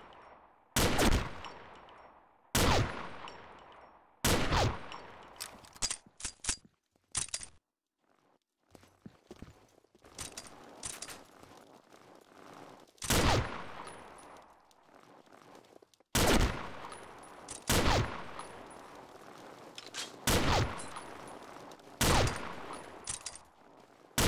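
A rifle bolt clicks and clacks between shots.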